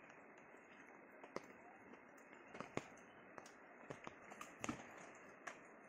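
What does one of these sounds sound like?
Footsteps crunch on a gravel path.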